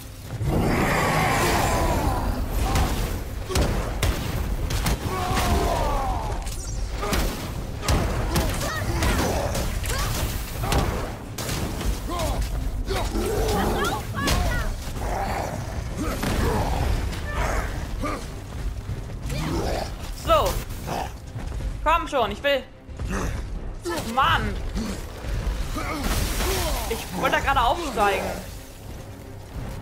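Heavy blows thud and crash again and again.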